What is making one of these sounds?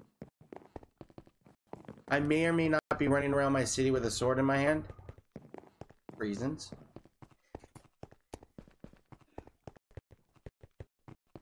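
Footsteps tap quickly on hard stone.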